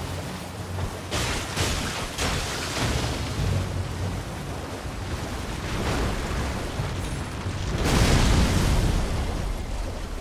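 Hooves splash through shallow water at a gallop.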